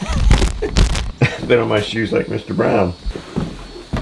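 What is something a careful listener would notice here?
Boots thump on wooden boards.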